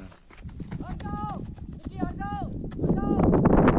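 Footsteps crunch quickly on dry ground as a man runs.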